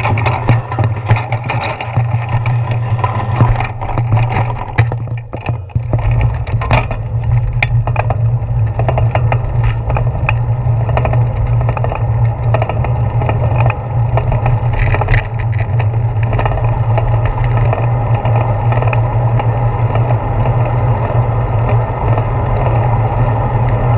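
Bike tyres roll over pavement.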